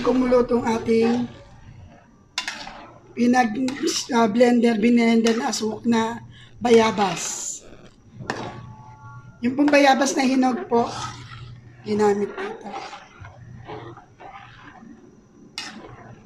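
A metal ladle scrapes and stirs in a metal pan.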